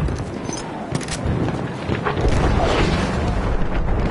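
A propeller plane drones overhead.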